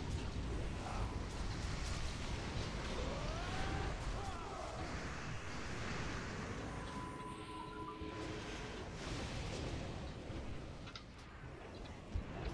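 Magical spell effects whoosh and crackle in a busy battle.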